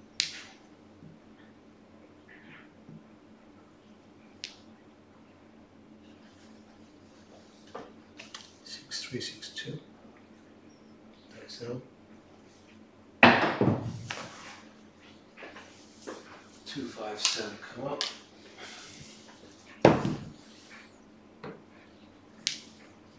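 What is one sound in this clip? Casino chips clack together as they are stacked and moved.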